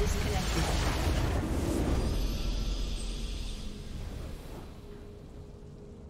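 A triumphant video game victory fanfare swells, then fades away.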